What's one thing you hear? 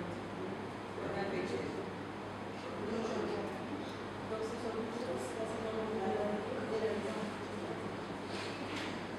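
An elderly man speaks through a microphone over loudspeakers in a room with some echo.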